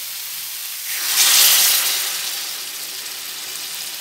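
Water pours into a hot pan with a loud hiss.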